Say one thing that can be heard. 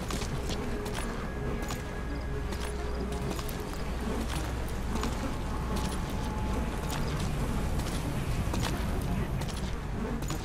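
Footsteps shuffle softly on concrete.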